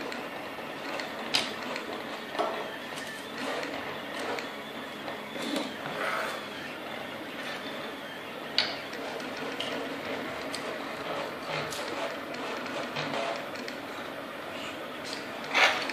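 A 3D printer's stepper motors whir and buzz as the print head moves back and forth.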